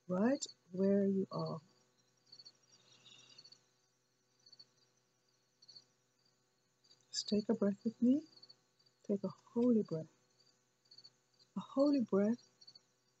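A woman speaks slowly and close to the microphone, with long pauses.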